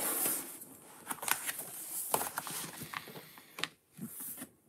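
Paper pages rustle as a booklet is turned.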